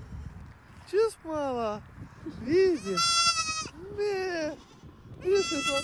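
A young goat bleats loudly up close.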